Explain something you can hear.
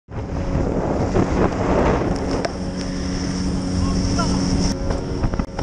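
A boat's outboard engine roars steadily.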